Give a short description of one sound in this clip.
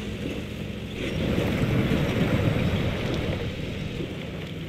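Water splashes and churns as a truck tips into a bog.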